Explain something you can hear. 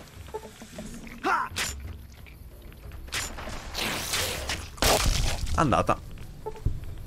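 Gunshots ring out from a video game.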